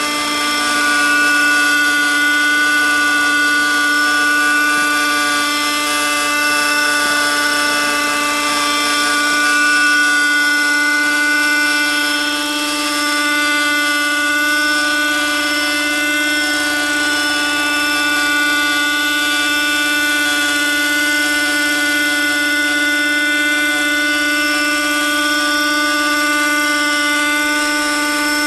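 A model helicopter's engine whines steadily overhead.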